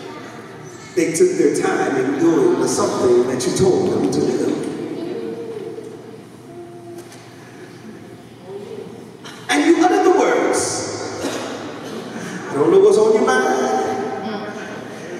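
A man speaks with animation through a microphone and loudspeakers in an echoing hall.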